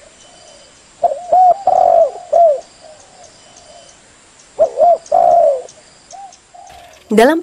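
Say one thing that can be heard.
Doves coo in short rounded bursts.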